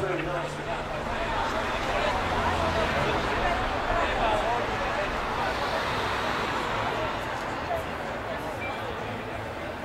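A crowd chatters outdoors at a distance.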